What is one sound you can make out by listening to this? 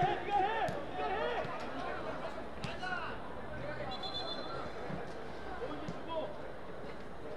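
Young players shout to each other across an open outdoor field.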